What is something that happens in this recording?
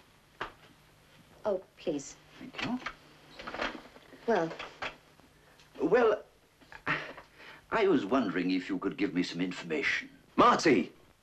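An elderly man speaks calmly and closely.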